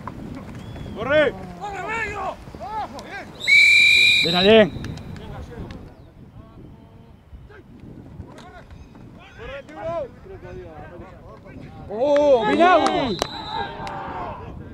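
Men shout loudly across an open field.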